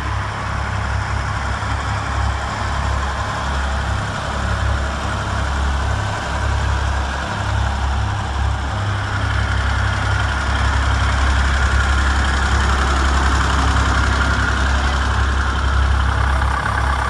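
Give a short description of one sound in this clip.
An old diesel tractor engine chugs with a low, steady throb as it drives past close by.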